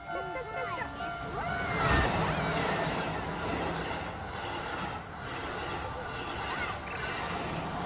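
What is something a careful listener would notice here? Young children talk and exclaim excitedly close by.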